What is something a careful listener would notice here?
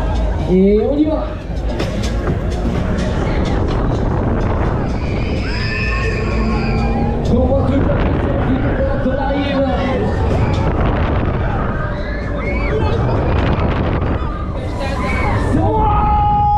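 Young riders scream and shriek excitedly nearby.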